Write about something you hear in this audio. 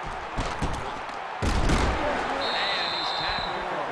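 Football players collide in a heavy tackle.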